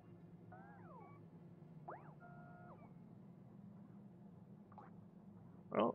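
Short electronic chirps sound as game pieces are placed.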